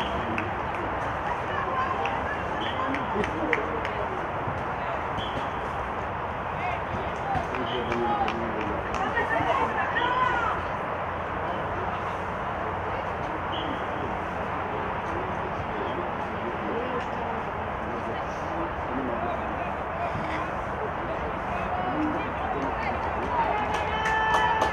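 Young women call out to one another from a distance across an open field.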